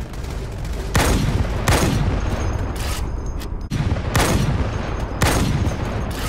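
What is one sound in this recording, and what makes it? A sniper rifle fires loud booming shots.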